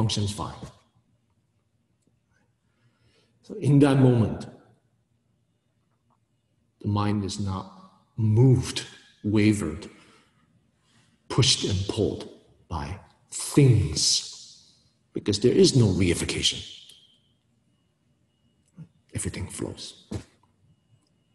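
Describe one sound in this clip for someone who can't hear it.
A man speaks calmly and closely, with pauses between phrases.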